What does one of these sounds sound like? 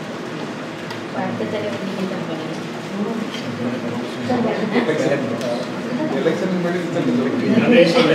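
A man speaks calmly to a small audience.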